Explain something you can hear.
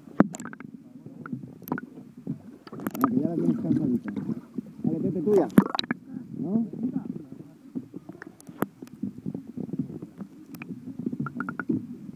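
Water rushes and gurgles, muffled as if heard underwater.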